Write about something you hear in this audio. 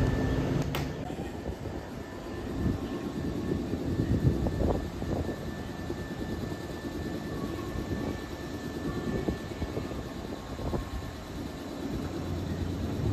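A stopped train's motors hum quietly while it idles.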